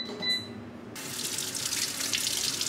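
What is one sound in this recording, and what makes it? Water runs from a tap and splashes over hands.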